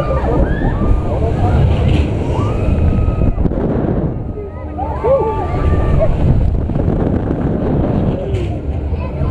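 Wind buffets loudly against a swinging ride.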